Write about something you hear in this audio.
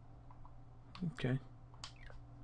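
A man speaks briefly and quietly into a microphone.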